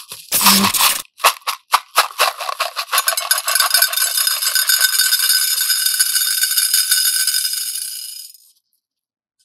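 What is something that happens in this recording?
Small beads pour and clatter onto a glass dish.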